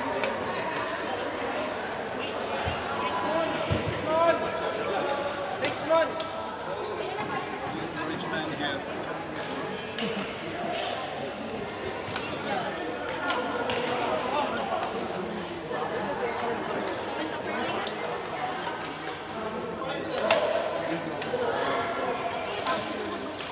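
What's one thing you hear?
Shoes squeak on a sports floor.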